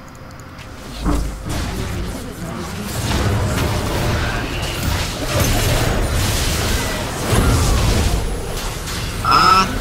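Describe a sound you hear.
Spell effects and weapon hits clash rapidly in a game fight.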